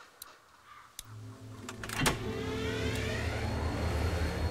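A large diesel engine starts up and rumbles loudly.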